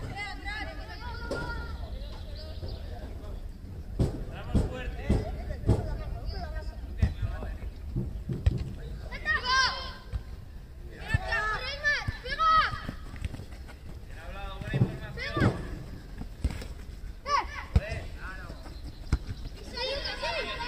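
Young players shout and call out.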